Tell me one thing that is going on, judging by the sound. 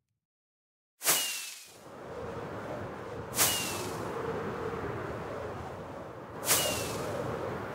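Firework rockets launch with sharp whooshing bursts.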